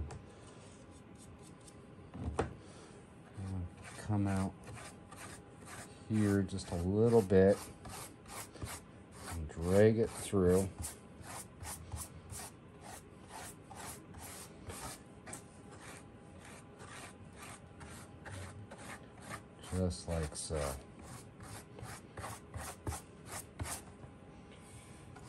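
A hand rubs quickly back and forth across a hard surface.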